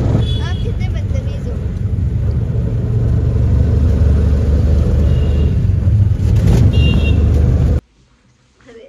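A vehicle engine rumbles loudly while driving.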